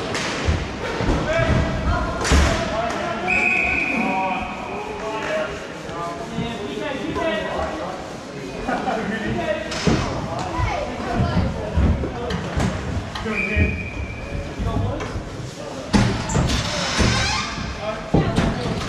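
Young men shout and call out across a large echoing hall.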